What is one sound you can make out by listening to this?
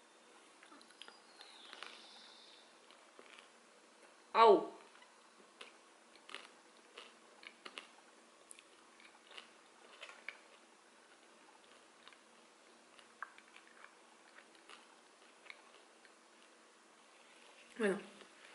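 A young woman chews crunchy food with clear crunching sounds.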